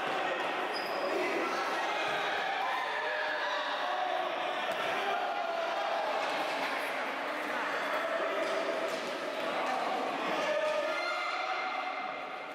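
Young players shout in a large echoing hall.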